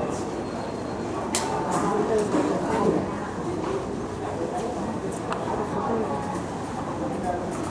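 A crowd chatters around.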